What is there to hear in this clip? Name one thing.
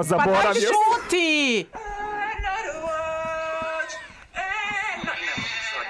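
Young women laugh loudly near microphones.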